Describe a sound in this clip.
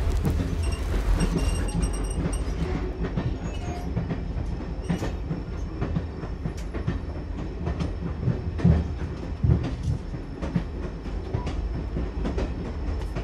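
Train wheels clatter and clank over rail joints.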